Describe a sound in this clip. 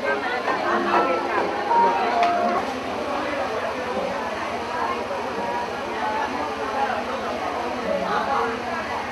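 A crowd of men and women chatter together in a busy room.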